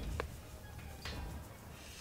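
A grinding wheel rasps against metal.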